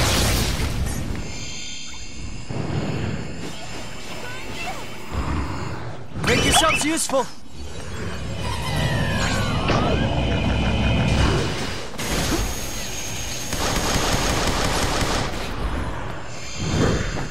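Game music and combat effects play loudly throughout.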